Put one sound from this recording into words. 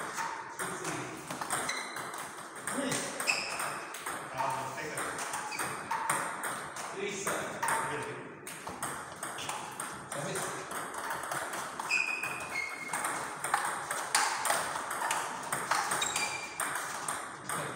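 Shoes squeak on the floor.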